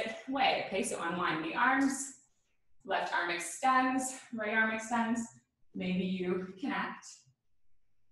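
A young woman speaks calmly and clearly, close to a microphone.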